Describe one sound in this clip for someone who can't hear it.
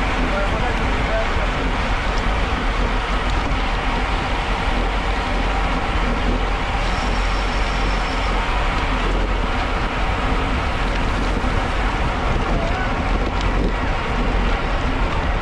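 Wind buffets a moving microphone loudly and steadily.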